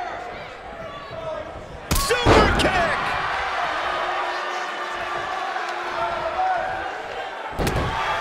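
A large crowd cheers and shouts in a big arena.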